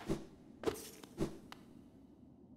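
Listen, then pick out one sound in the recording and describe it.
Quick light footsteps tap on a hard floor.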